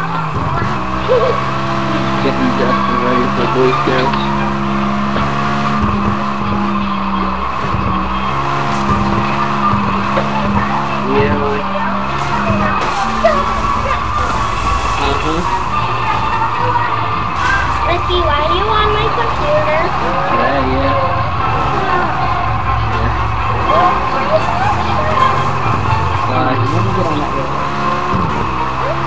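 A sports car engine roars and revs at high speed.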